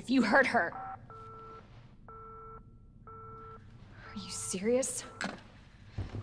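A phone line beeps with a busy tone.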